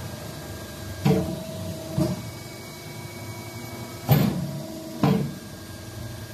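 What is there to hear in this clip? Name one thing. A hydraulic embossing press clunks as its heads clamp down and lift.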